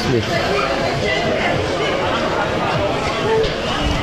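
A crowd of people chatters all around in a busy, echoing indoor space.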